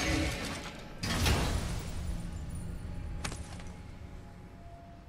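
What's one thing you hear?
A heavy metal lid swings open with a deep rumble.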